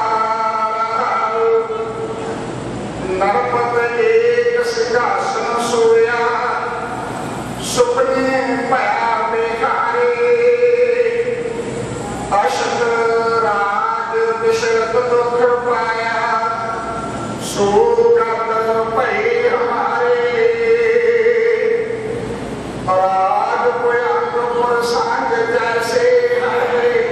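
A middle-aged man sings slowly through a microphone in a large, echoing room.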